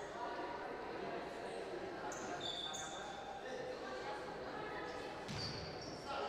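A crowd of spectators chatters in the background.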